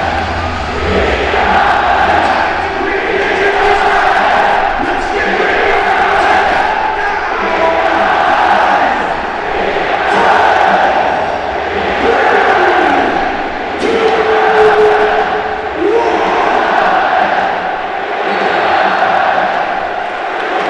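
A huge stadium crowd chants and sings in unison, loud and echoing.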